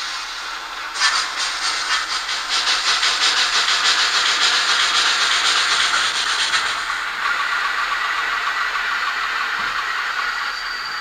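A small loudspeaker plays the fast, rhythmic chuffing of a steam locomotive.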